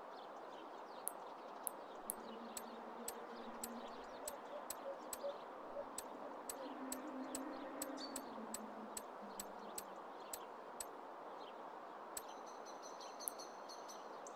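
Short menu clicks tick in quick succession as a selection scrolls.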